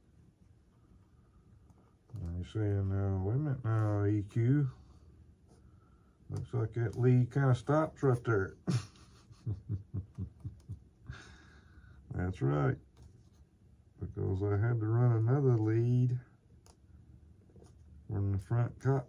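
Small plastic parts click and rustle in hands.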